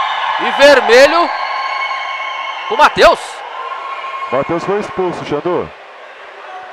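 Men shout loudly across a large echoing hall.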